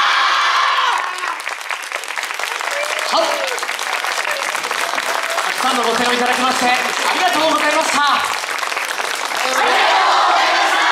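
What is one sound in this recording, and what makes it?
Wooden clappers clatter rapidly as dancers perform.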